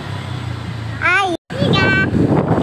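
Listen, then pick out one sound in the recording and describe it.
A young girl laughs and squeals close by.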